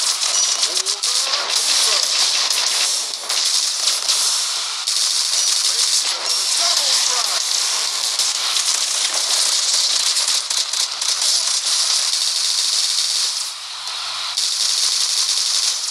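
Rapid video game gunfire crackles and bursts steadily.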